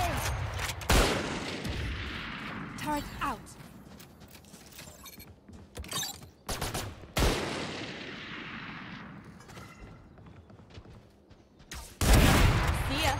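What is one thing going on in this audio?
A sniper rifle fires sharp, loud shots that ring out and fade.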